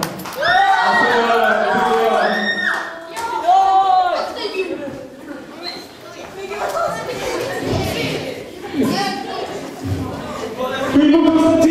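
A crowd cheers and shouts along.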